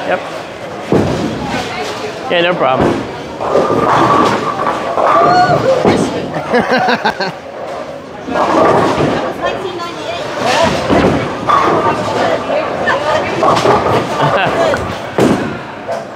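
A bowling ball thuds onto a lane and rolls away.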